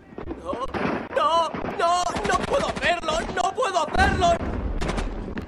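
A man shouts urgently nearby.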